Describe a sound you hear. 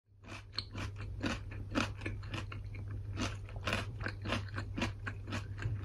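Someone chews a raw carrot with loud, rhythmic crunches close by.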